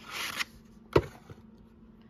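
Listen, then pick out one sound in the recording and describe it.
A plastic tray clicks as it is pulled out.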